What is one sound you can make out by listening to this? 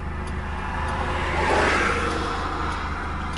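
An oncoming car rushes past.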